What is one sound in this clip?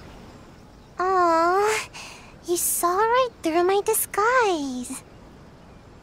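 A young girl speaks playfully in a high voice.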